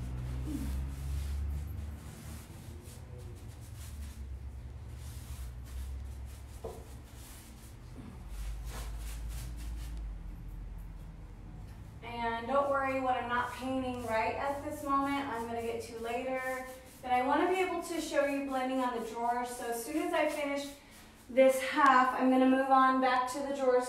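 A paintbrush brushes against wood.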